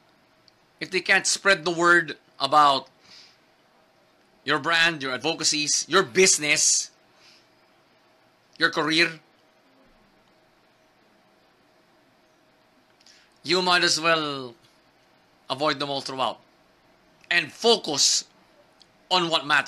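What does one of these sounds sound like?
A young man talks calmly and close up, pausing between phrases.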